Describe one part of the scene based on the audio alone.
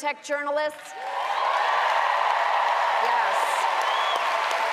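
A large audience cheers and applauds loudly in a big hall.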